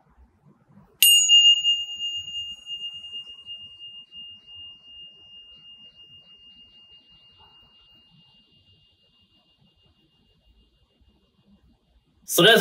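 Small hand chimes are struck together and ring out in a long, clear, fading tone.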